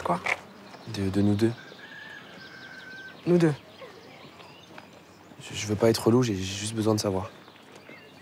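A young man answers quietly nearby.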